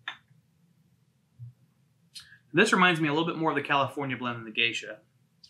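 A spoon clinks against a glass cup.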